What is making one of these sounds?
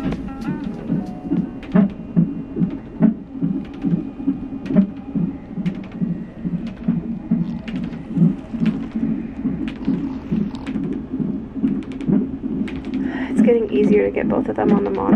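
A fetal heart monitor plays a fast, steady whooshing heartbeat through a small loudspeaker.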